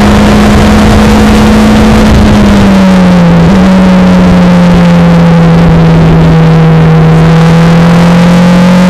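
A Formula Renault 2.0 single-seater engine drones at speed on a track.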